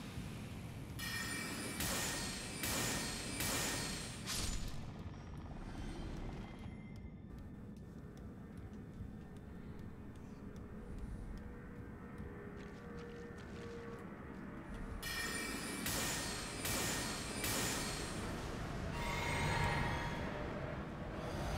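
Sword swings and magic blasts burst in quick, loud bursts.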